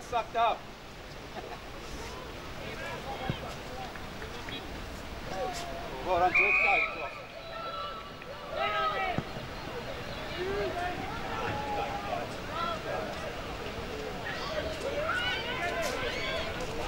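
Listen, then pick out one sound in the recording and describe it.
Young women players shout and call out across an open field outdoors.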